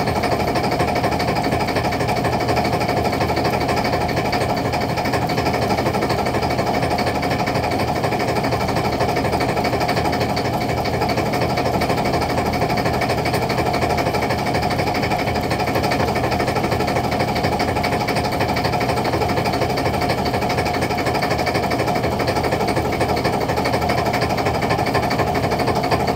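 A motor drones steadily and loudly close by.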